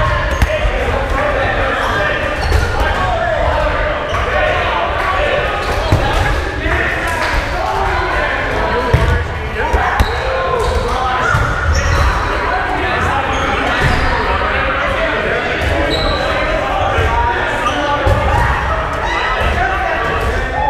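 Young adult men and women shout and call out during a game in a large echoing hall.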